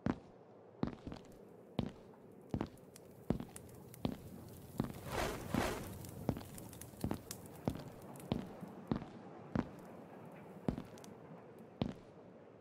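Footsteps thud steadily on stone, echoing in a hard-walled space.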